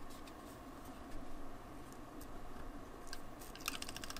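A tape dispenser clicks and rolls over paper.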